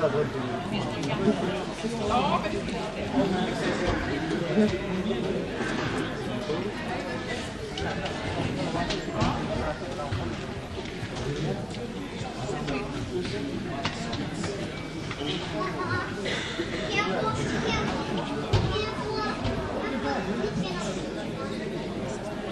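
Many voices of a crowd murmur and chatter throughout a large echoing hall.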